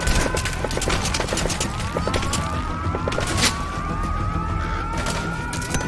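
Gunshots crack nearby.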